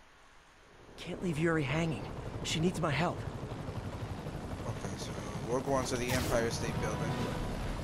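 A helicopter's rotor thuds overhead.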